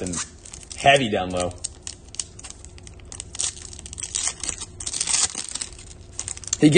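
A foil wrapper crinkles in hands.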